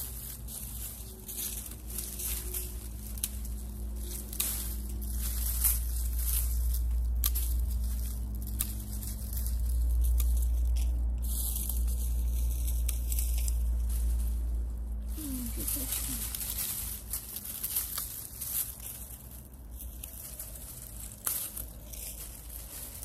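Dry plant stalks rustle and crackle close by.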